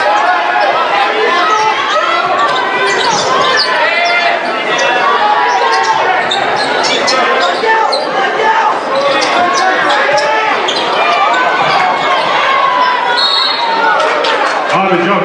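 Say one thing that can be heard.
A large crowd cheers and shouts loudly in an echoing gym.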